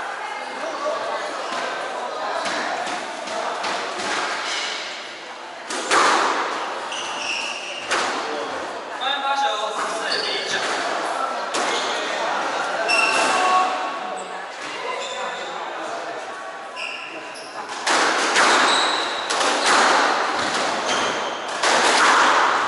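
A squash ball smacks against the walls with sharp echoing bangs.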